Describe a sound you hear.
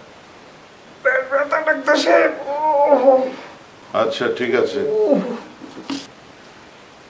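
A middle-aged man speaks with animation nearby.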